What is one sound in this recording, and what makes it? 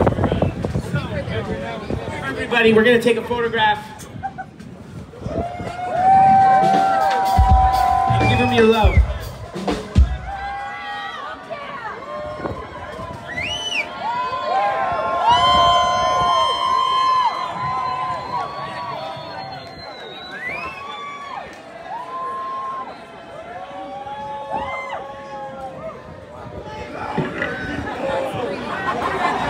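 A group of men and women sing together through microphones.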